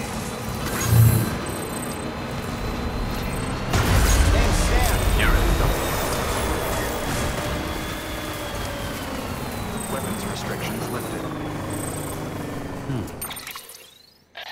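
A vehicle engine rumbles steadily as it drives over rough ground.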